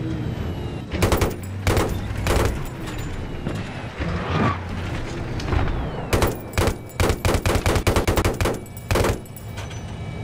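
A machine gun fires in short, rapid bursts.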